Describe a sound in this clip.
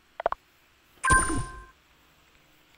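A game menu button gives a short electronic chime.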